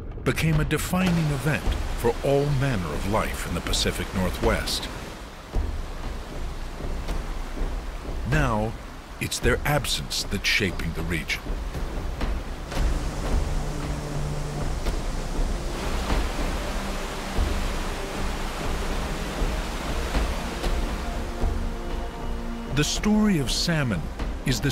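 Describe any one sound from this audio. A waterfall roars and splashes.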